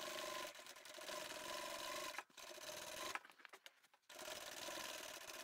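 A sewing machine whirs steadily as it stitches, pausing briefly.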